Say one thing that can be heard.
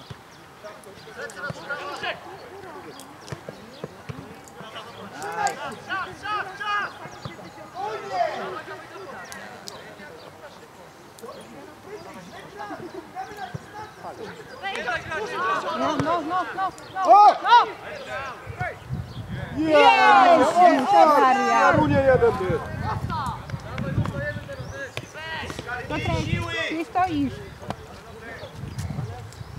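Men shout and call out across an open playing field.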